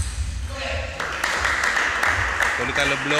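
A small crowd applauds.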